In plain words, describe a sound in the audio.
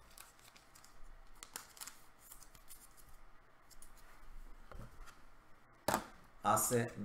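Plastic wrappers crinkle as hands tear open card packs.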